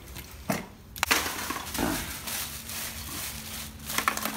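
A plastic bag rustles and crinkles as it is handled.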